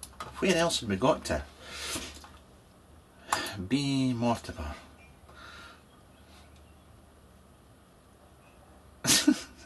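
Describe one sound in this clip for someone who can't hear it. A man talks casually and close by, in short bursts.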